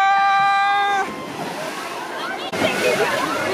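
Water splashes heavily as bodies hit a pool.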